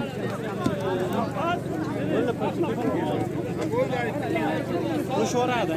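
A crowd of men shouts and talks excitedly close by, outdoors.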